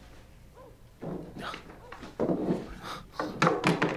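A man rummages through a wooden barrel.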